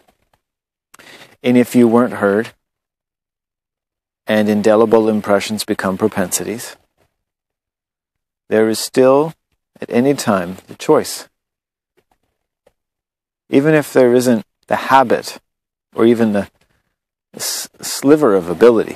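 A man speaks calmly close by, in short phrases with pauses.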